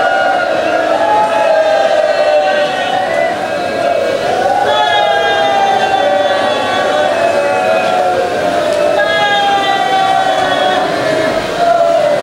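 A man sings a mournful lament loudly through a loudspeaker.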